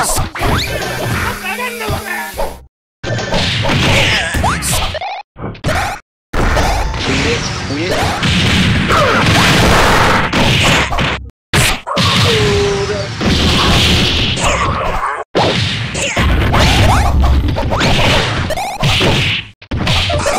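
Cartoon fighters trade rapid hits with sharp smacks and blasts.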